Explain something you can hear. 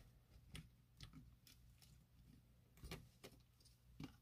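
A circuit board scrapes and knocks against a plastic casing as it is lifted out.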